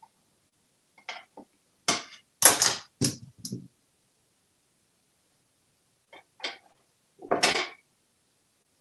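A parrot makes short squawks and clicks.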